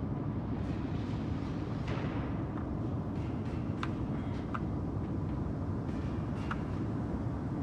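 Footsteps tap on a metal walkway.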